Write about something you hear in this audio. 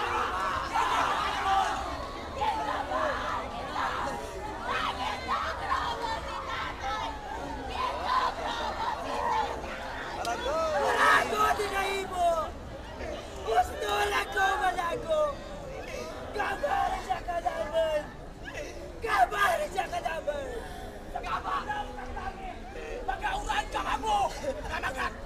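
A large crowd murmurs in the distance.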